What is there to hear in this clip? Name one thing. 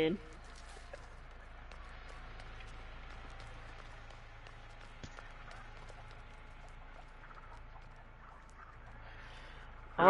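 Footsteps run over a dirt path.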